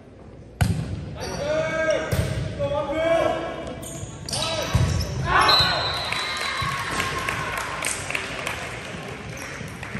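Young men shout to each other across a large echoing gym.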